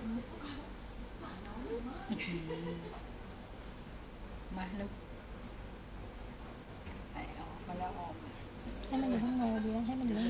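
A small monkey rustles about in a soft fabric bed.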